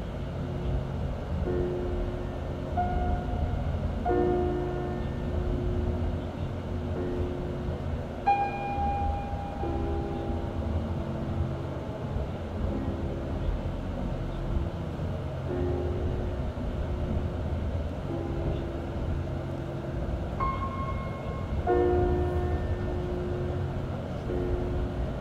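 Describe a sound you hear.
A car drives steadily along a road with a low rumble of tyres.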